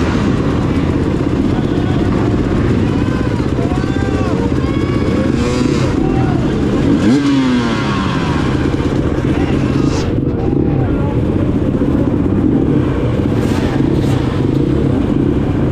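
A dirt bike engine revs loudly up close.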